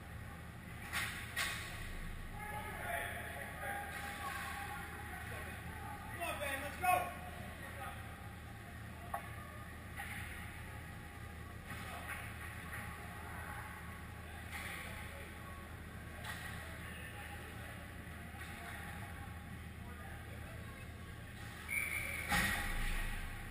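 Hockey sticks and pucks clack on the ice in a large echoing rink.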